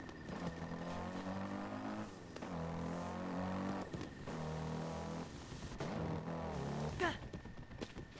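A horse gallops with pounding hoofbeats.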